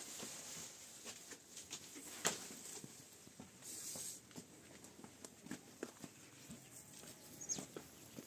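Footsteps scuff on a gritty floor and dirt.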